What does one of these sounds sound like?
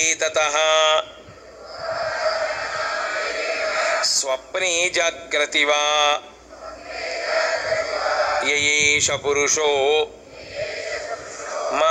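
An elderly man chants in a melodic, sung voice.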